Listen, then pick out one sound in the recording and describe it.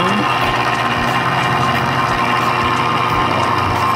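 A grinding wheel rasps against metal.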